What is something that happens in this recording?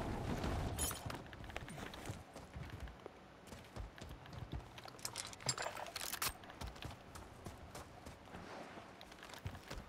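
Footsteps thud on dirt and concrete.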